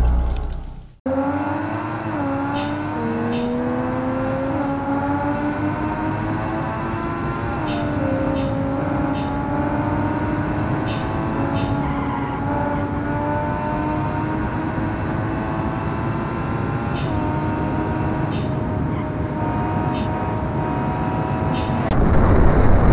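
A car engine hums steadily and shifts through gears as it speeds up.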